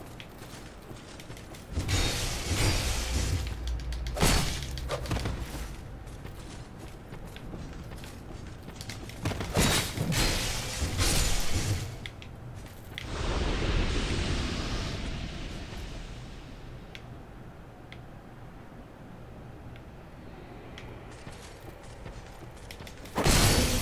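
Metal armor clanks and rattles with movement.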